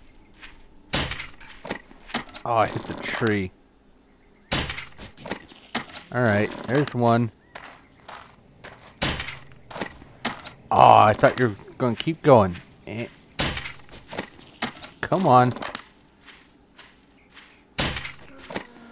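A crossbow fires with a sharp snap, again and again.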